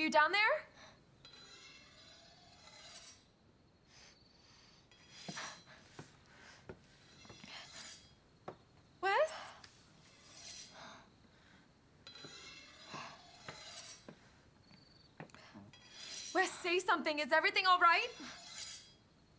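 A young woman speaks quietly and tensely.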